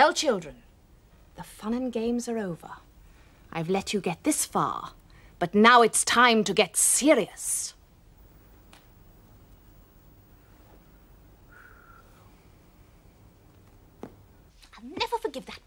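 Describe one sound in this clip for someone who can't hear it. A woman speaks with exaggerated animation, close by.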